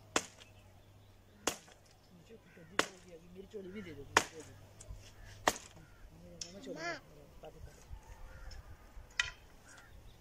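An axe chops into wood with sharp, regular blows.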